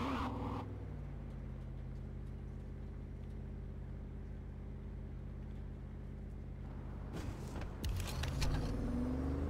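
A car engine idles with a low steady hum.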